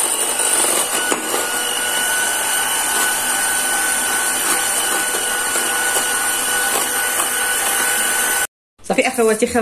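An electric hand mixer whirs steadily as it beats a batter.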